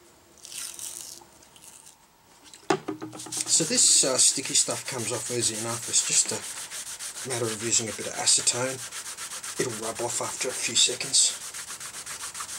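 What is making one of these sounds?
Sandpaper rasps against wood.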